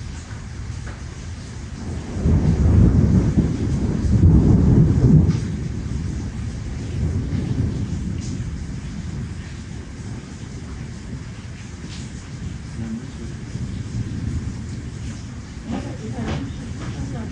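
Cutlery and dishes clink softly now and then.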